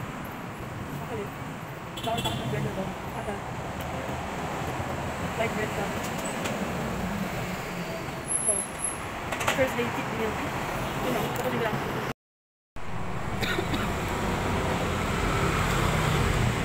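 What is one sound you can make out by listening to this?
A young woman talks quietly close by.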